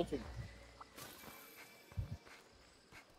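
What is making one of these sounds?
A blade slashes and thuds against a creature.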